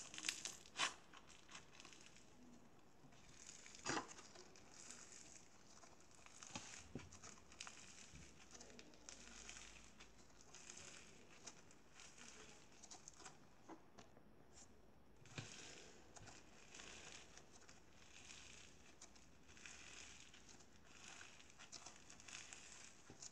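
Sticky slime squishes and crackles as hands knead and stretch it.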